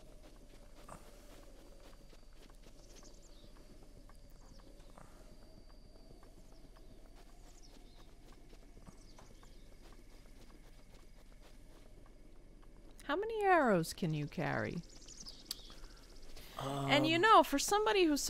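Light footsteps run through grass.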